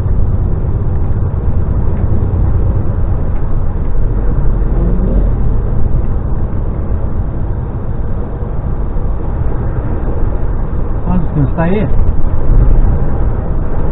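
A vehicle's engine drones steadily while driving along a road.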